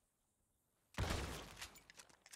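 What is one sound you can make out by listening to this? A shotgun fires a loud blast at close range.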